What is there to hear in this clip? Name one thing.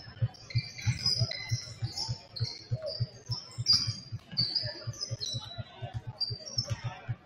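A basketball bounces on a wooden floor in steady, quick thumps, echoing in a large hall.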